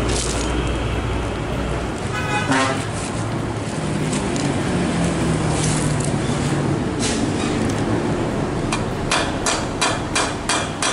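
A metal chain clinks and rattles as it is handled.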